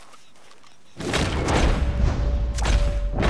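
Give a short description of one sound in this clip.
A gunshot booms loudly and echoes.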